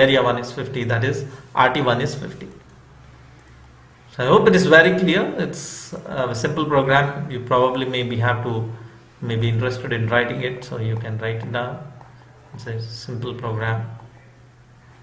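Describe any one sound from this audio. A man speaks calmly and explains, close to a microphone.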